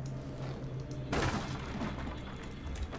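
Wooden boards burst apart and splinter with a loud crash.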